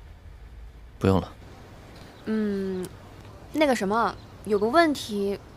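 A young woman speaks over the phone in a soft, playful voice.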